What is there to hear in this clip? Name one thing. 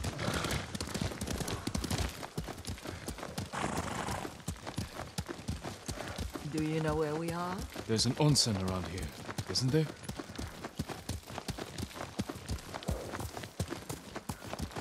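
Horses' hooves clop steadily on a dirt path.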